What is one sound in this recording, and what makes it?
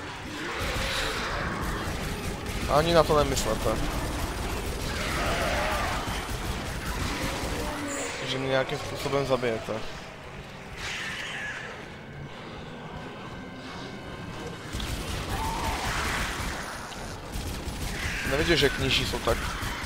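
A futuristic weapon fires sharp energy shots.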